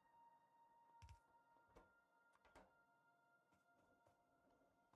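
Short thuds sound as buildings are placed.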